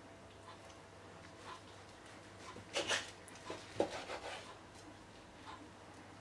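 A knife slices through cooked meat on a wooden board.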